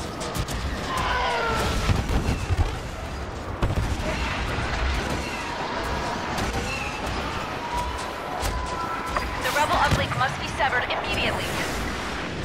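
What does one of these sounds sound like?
Starfighters roar past overhead.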